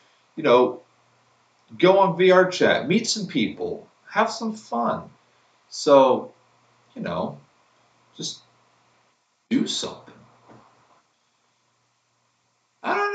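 A man speaks close by in short, halting bursts.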